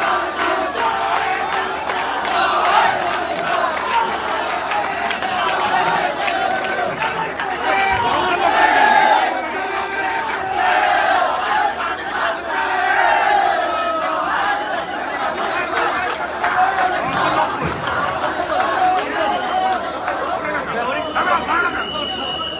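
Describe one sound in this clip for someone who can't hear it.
A crowd of men talk and call out loudly nearby, outdoors.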